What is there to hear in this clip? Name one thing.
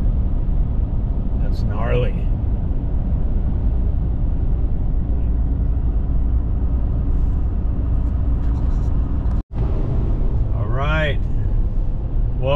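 Tyres rumble steadily on a paved road.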